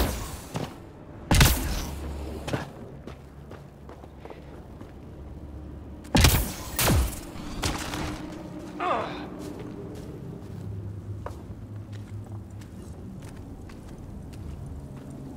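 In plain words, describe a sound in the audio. Heavy footsteps crunch steadily over rock and gravel.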